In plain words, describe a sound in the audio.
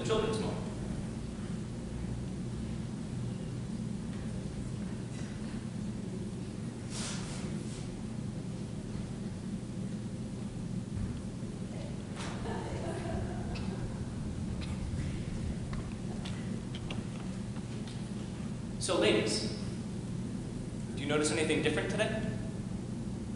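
A man speaks through a microphone in short bursts, echoing in a large hall.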